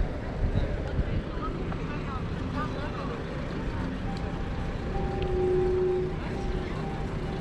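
A fire engine's engine rumbles nearby.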